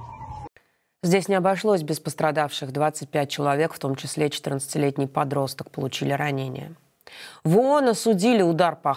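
A woman speaks calmly and clearly into a microphone, like a news presenter.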